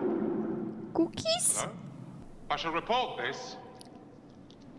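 A man speaks quietly, heard through a loudspeaker.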